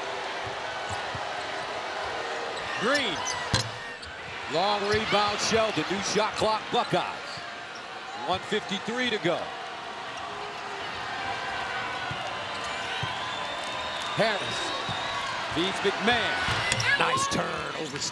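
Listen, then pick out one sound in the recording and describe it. A basketball bounces on a hardwood floor.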